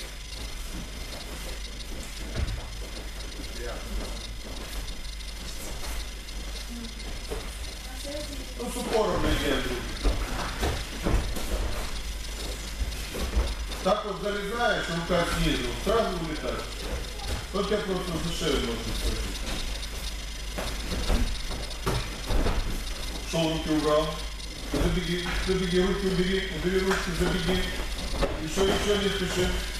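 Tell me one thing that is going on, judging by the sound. Bare feet shuffle and thump on a padded mat.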